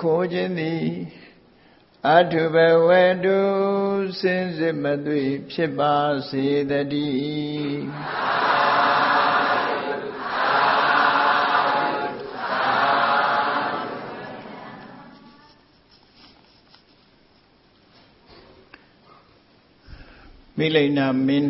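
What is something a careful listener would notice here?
An elderly man chants slowly in a drawn-out voice.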